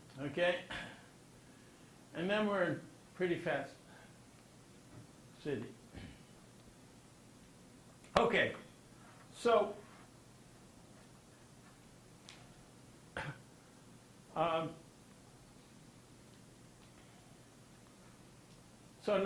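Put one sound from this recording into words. An elderly man speaks slowly in short, halting phrases.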